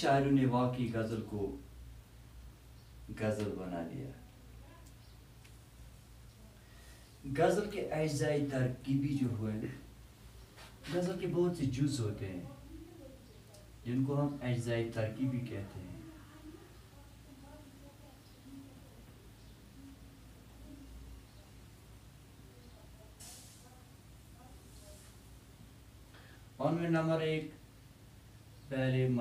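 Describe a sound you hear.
An elderly man speaks calmly in short phrases, close by.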